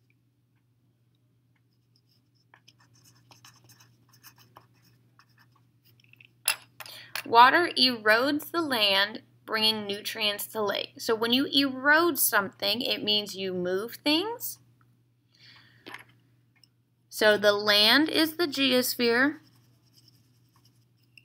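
A marker scratches softly on paper.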